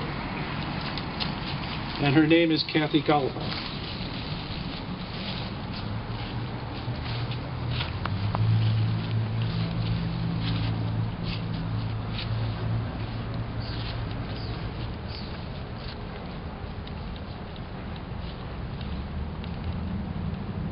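A woman's footsteps rustle through dry leaves.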